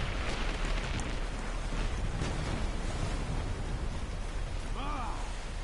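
Metal blades clash and swish in a fight.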